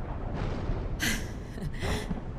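A young woman speaks softly and warmly.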